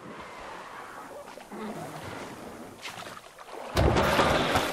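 An oar paddles softly through water.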